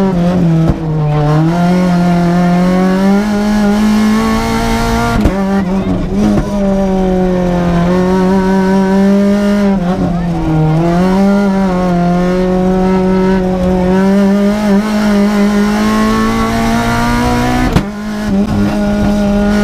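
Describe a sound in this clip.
A race car engine roars loudly from inside the cabin, revving up and dropping at each gear change.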